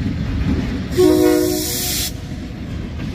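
A locomotive horn blasts once, loud and close.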